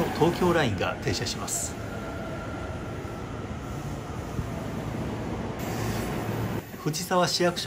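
A train rumbles into a station.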